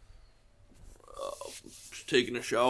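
A man blows his nose into a tissue.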